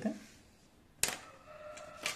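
A plastic ruler clacks down onto a table.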